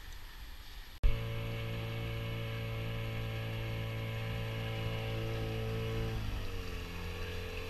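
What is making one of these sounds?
An outboard motor hums steadily.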